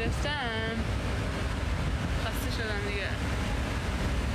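A young woman speaks close to a phone microphone, with surprise.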